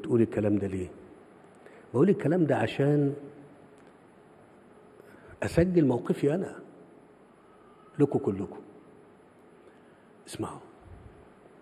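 A middle-aged man speaks slowly and deliberately through a microphone, with long pauses.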